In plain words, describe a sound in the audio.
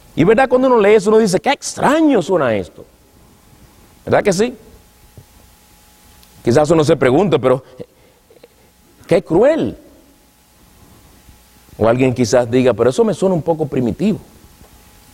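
A man preaches with emotion into a microphone, in short bursts with pauses.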